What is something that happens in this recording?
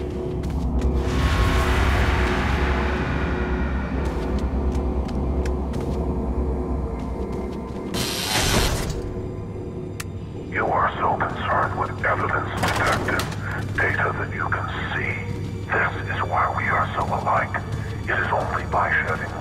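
Footsteps thud slowly on wooden stairs and floorboards.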